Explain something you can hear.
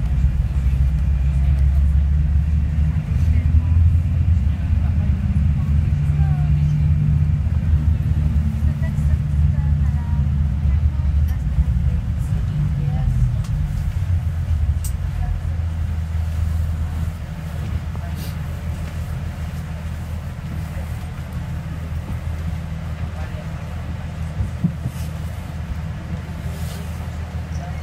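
A bus engine rumbles low and steady while driving, easing off partway through.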